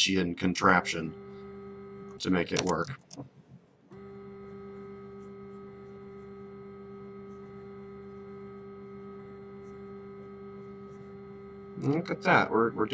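A machine's engine hums steadily.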